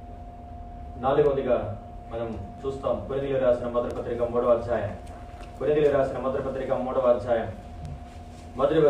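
A man speaks with emotion into a microphone, heard through loudspeakers in a large room.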